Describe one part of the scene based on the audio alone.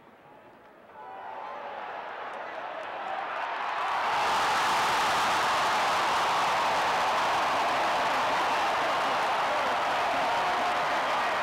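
A large stadium crowd cheers, swelling into a loud roar.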